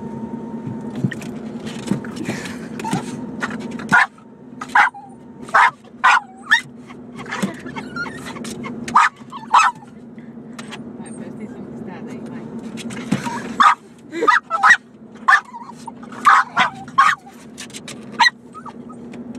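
A dog barks loudly in short, repeated bursts close by.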